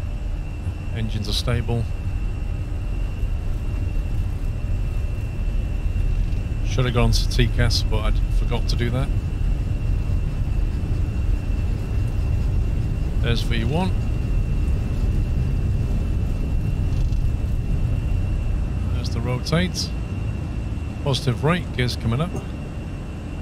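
Tyres rumble along a runway, then fall quiet as the plane lifts off.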